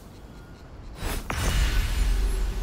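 A magical shimmer swells with a deep rumble.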